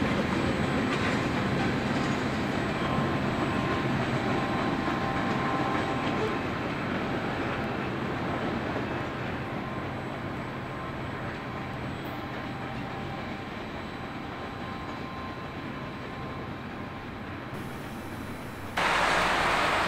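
A train rumbles along the tracks and slowly fades into the distance.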